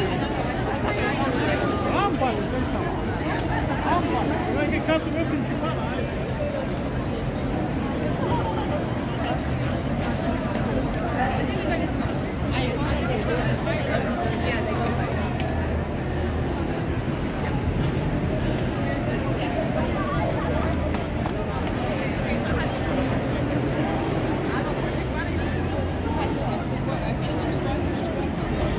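Buses rumble by in traffic.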